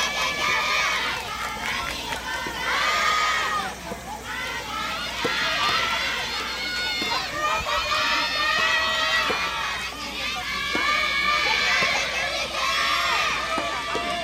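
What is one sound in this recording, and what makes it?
Young women shout and cheer loudly from nearby courts outdoors.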